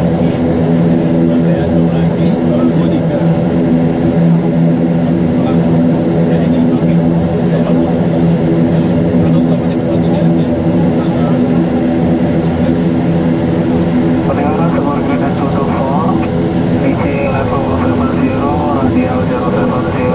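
The turboprop engines of a twin turboprop airliner drone, heard from inside the cockpit as it taxis.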